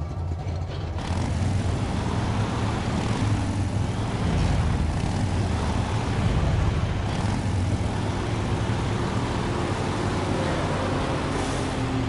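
Tyres crunch over dirt and gravel.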